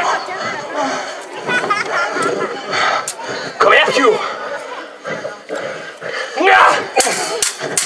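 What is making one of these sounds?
A young woman shouts and screams nearby.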